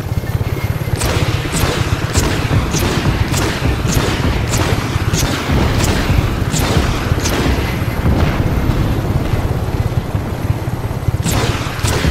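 Explosions boom one after another.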